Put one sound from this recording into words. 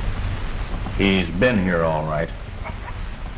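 An older man speaks gruffly, close by.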